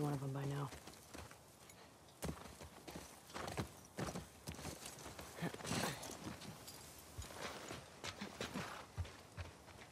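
A horse's hooves clop slowly on the ground.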